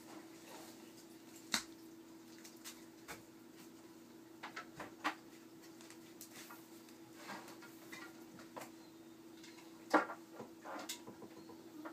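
Light fixtures click and knock as someone handles them.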